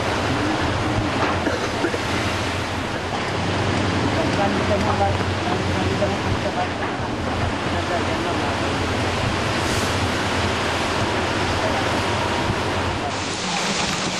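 Rough waves crash against a sea wall.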